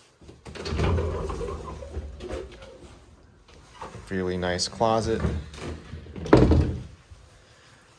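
A closet door slides and thumps open.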